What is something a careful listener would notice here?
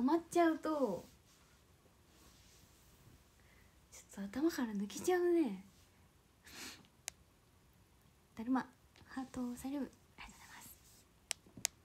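A young woman speaks softly and playfully close to a microphone, with pauses.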